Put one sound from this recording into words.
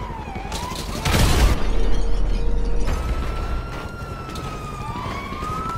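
A car engine hums as a car approaches.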